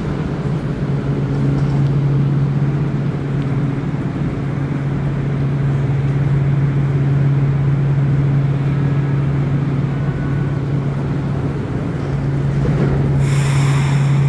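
A subway train hums steadily while stopped at a platform.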